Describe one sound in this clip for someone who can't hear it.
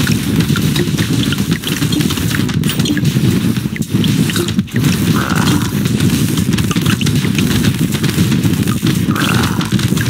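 Explosions burst with dull booms.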